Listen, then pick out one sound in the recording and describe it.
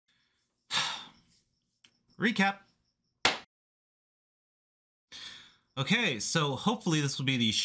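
A young man speaks with animation close to a microphone, in short bursts with pauses.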